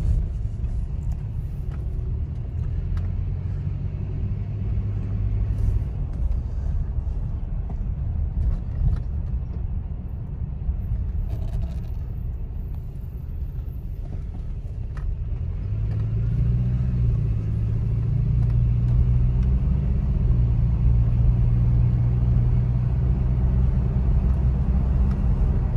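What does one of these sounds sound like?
A car engine idles with a low steady rumble, rising a little in pitch and loudness partway through.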